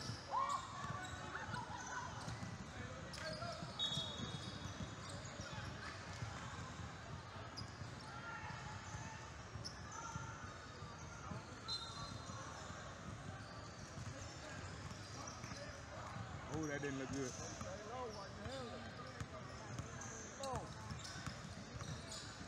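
A basketball bounces on a hardwood court.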